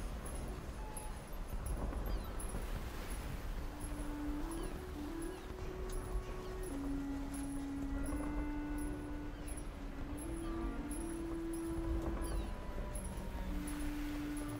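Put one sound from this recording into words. Water laps gently against a ship's hull.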